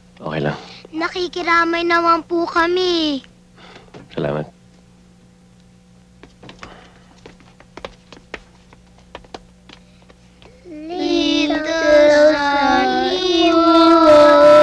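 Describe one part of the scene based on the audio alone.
Young girls sing together close by.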